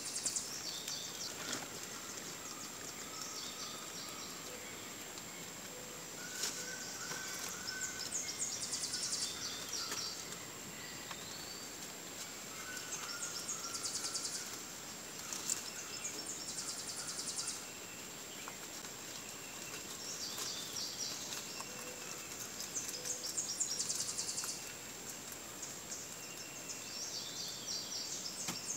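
Rabbits munch on fresh leaves.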